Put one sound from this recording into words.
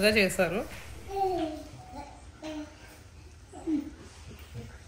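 A young girl speaks softly.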